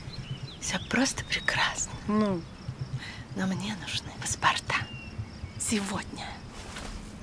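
A woman speaks softly and warmly up close.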